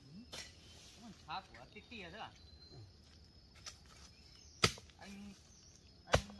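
Bare feet step on dry leaves and dirt.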